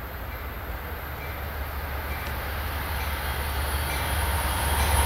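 A train approaches with a low rumble that grows steadily louder.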